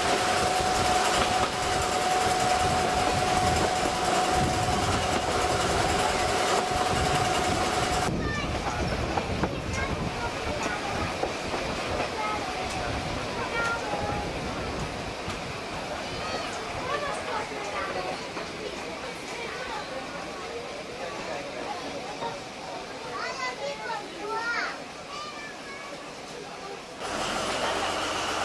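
A small train rumbles and rattles steadily along its tracks.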